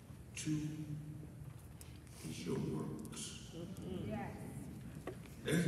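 A man speaks into a microphone with feeling, heard through a loudspeaker in a large hall.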